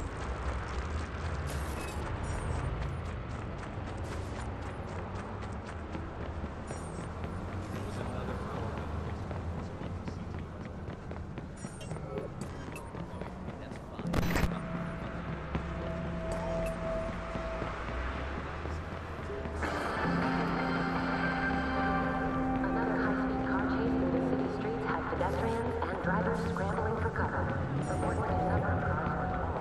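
Footsteps run quickly over pavement.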